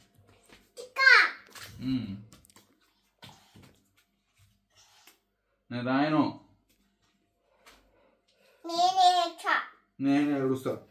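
A small girl talks in a high, childish voice nearby.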